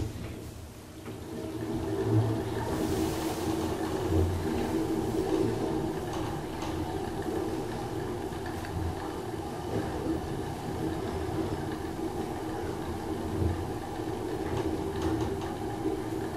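A traction elevator car hums as it travels upward.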